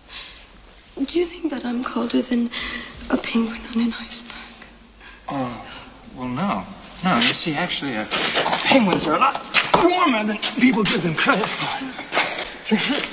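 A woman cries and sobs up close.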